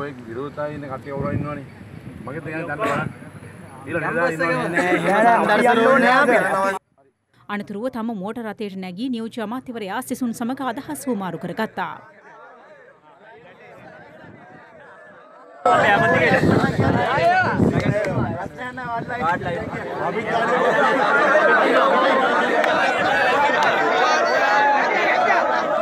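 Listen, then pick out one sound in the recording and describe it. A crowd of men shouts and chatters all around.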